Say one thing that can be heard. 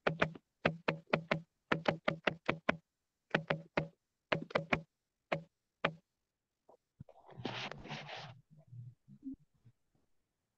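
A man speaks in short bursts through an online call.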